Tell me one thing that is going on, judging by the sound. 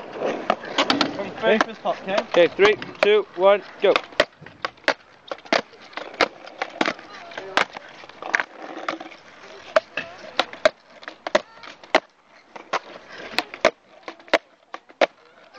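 Skateboard wheels roll and clack on asphalt.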